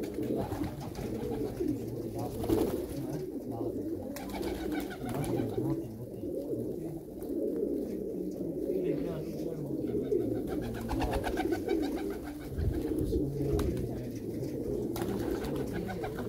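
Pigeons coo in low, throaty bursts close by.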